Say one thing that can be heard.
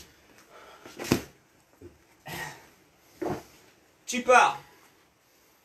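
Feet thump on a hard floor as a man jumps.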